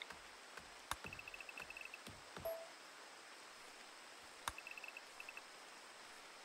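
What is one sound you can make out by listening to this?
Soft, quick ticking clicks sound as an area is marked out.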